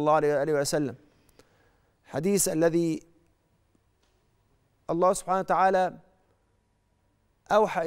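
A middle-aged man speaks calmly and deliberately into a close microphone, with pauses between phrases.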